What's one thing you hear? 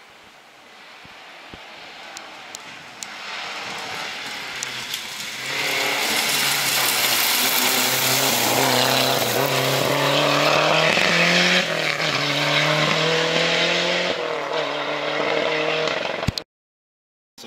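A rally car engine roars closer, revving hard through the gears, then fades away.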